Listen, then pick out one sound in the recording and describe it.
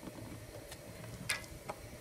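Oil trickles into water in a metal pot.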